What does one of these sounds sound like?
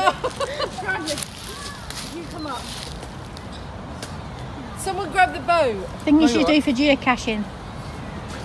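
A woman talks with animation close by, outdoors.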